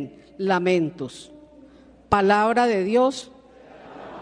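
A middle-aged woman sings into a microphone in an echoing hall.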